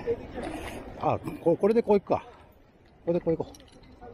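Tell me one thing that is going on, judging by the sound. A metal hook clicks against a fish grip.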